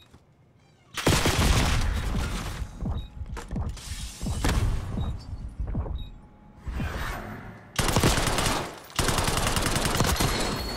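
Rapid gunshots crack loudly in quick bursts.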